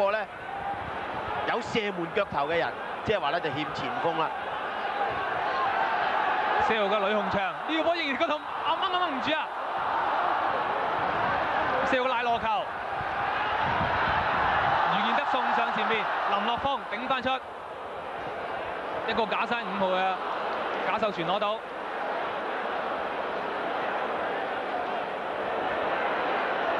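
A large crowd roars and murmurs steadily in a big open stadium.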